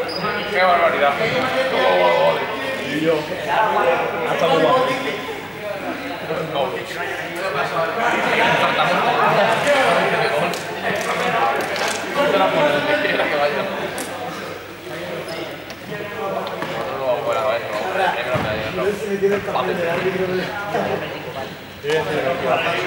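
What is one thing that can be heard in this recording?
A crowd of teenagers chatters loudly in a large echoing hall.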